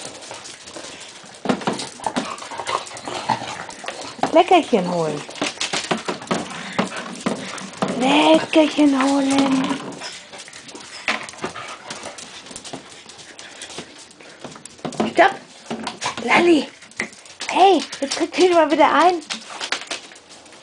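Dog claws patter on a hard floor.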